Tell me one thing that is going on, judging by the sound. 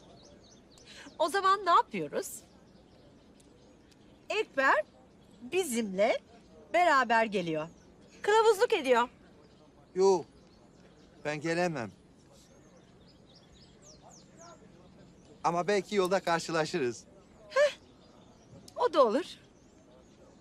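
A woman speaks animatedly and close by.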